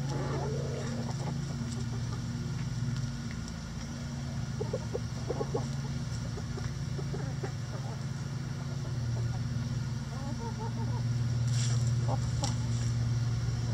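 Hens scratch and peck at dry straw.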